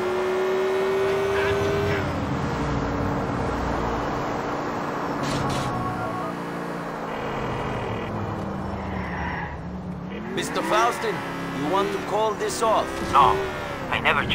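A car engine hums steadily as the car drives along, its pitch shifting with the speed.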